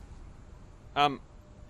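A young man exclaims briefly into a close microphone.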